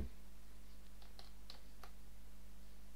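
Short electronic blips pop several times as targets are hit.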